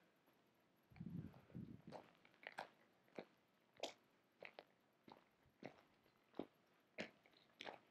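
A dog's paws crunch on a gravel path.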